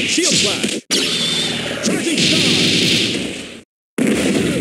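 A loud fiery blast bursts and roars.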